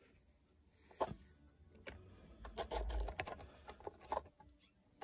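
A small plastic model train car knocks and rolls on a tabletop.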